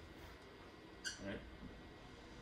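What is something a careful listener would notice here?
A marker squeaks briefly on a whiteboard.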